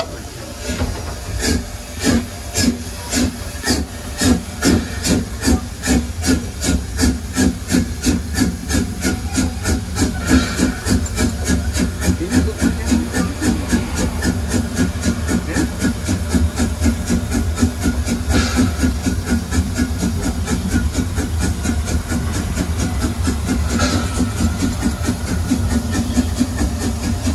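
A steam locomotive chuffs rhythmically, speeding up as it pulls away.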